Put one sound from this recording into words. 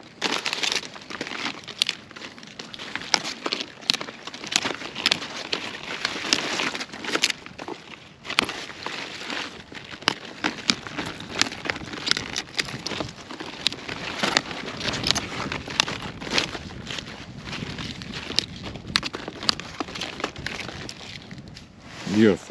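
Brussels sprouts snap and crack as they are broken off a stalk by hand.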